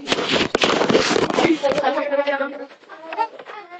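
A boy speaks loudly and excitedly close to the microphone.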